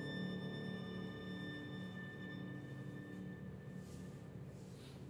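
A grand piano holds a soft chord.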